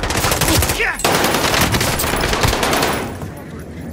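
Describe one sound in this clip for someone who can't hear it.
Rapid bursts of automatic gunfire rattle loudly.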